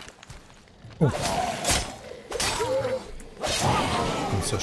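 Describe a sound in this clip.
A blade strikes a creature with sharp impacts.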